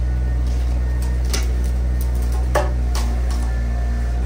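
Wooden fence panels creak and crack as an excavator bucket pushes against them.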